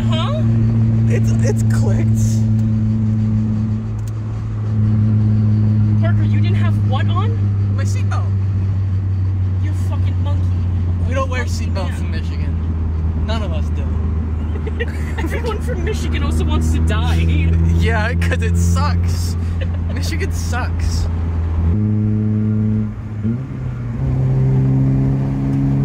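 A car engine drones loudly and steadily, shifting pitch as gears change.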